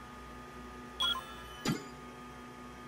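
A game menu beeps with a short chime.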